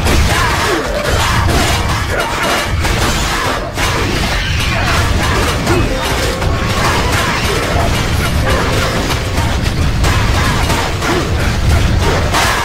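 Swords clash and strike a giant creature with sharp metallic hits.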